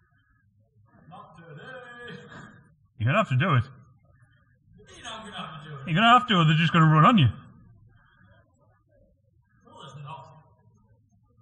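A man shouts and calls out nearby.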